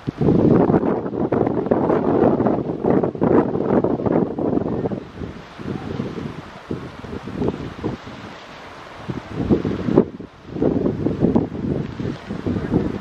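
Wind gusts roar across the microphone outdoors.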